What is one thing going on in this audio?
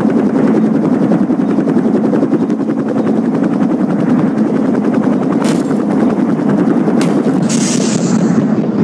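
Helicopter rotor blades thump steadily.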